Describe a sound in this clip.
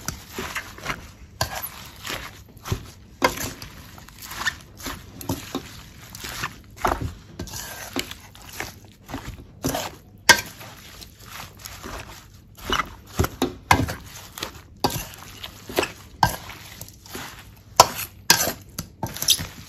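A metal spoon scrapes and clinks against a metal bowl while tossing wet food.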